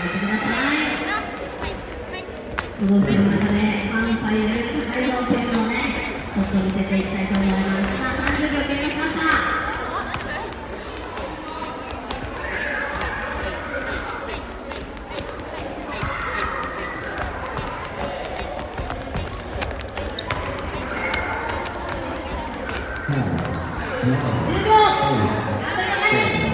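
Children's feet thud as they jump on a wooden floor.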